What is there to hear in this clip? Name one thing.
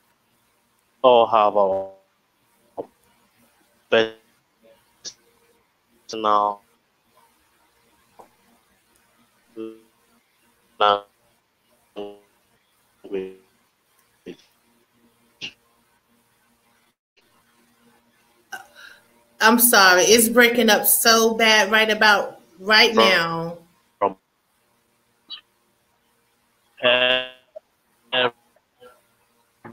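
A man speaks in short remarks over an online call.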